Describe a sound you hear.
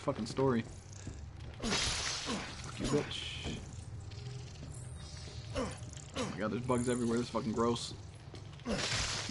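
A young man talks with animation into a close microphone.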